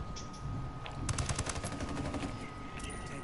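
Rapid gunfire rattles briefly.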